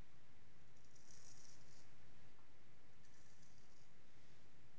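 A razor scrapes across stubble in short strokes.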